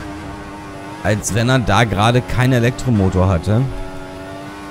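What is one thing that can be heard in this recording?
A racing car engine screams as it revs up and shifts through several gears quickly.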